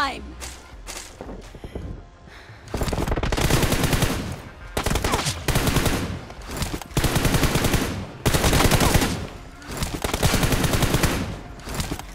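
Footsteps run quickly over gravel and grass.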